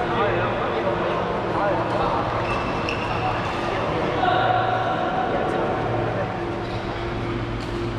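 Men call out to each other loudly across a large echoing hall.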